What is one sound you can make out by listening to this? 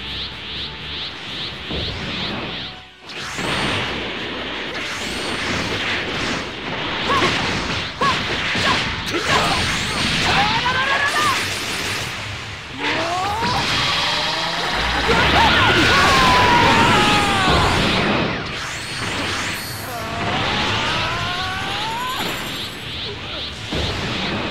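Energy blasts and punches crash and boom in a fast video game fight.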